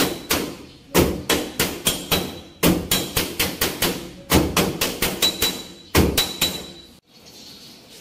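A hammer bangs rapidly on sheet metal, ringing sharply.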